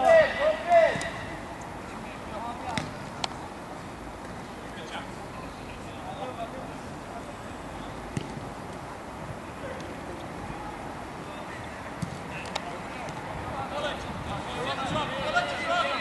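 A football is kicked with a thud.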